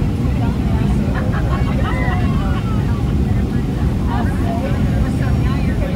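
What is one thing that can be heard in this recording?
A jet engine roars steadily, heard from inside the cabin.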